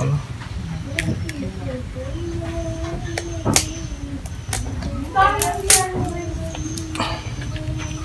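A plastic bottle clicks and rattles in hands.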